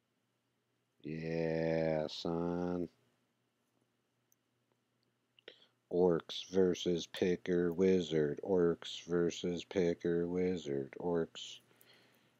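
A man speaks close to a microphone, in short bursts.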